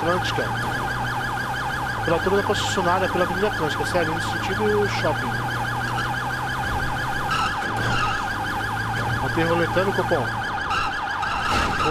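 A police siren wails in a fast, steady warble.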